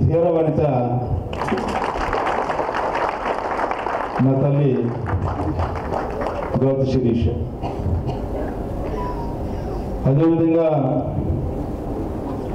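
A middle-aged man speaks with animation into a microphone, heard through loudspeakers.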